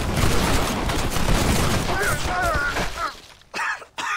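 A volley of rifle shots rings out.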